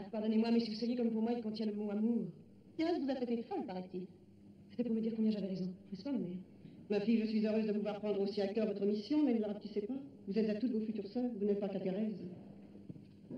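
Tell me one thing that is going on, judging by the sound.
An elderly woman speaks calmly through an old, crackly recording.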